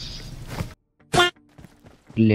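A duck quacks loudly once.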